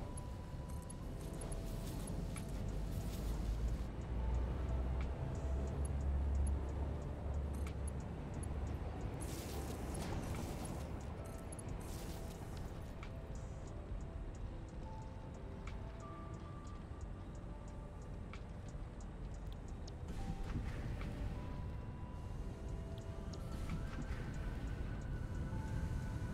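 Short electronic tones blip now and then.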